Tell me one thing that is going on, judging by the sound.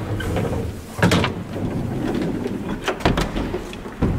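A door handle clicks as it is pressed down.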